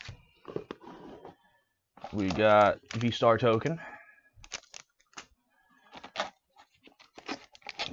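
Cardboard taps and scrapes as a box is handled.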